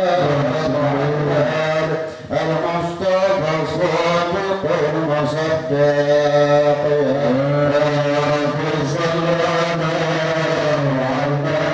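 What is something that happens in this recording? An elderly man sings a slow, drawn-out chant through a microphone.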